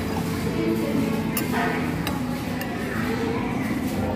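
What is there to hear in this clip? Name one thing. A fork and knife scrape against a plate.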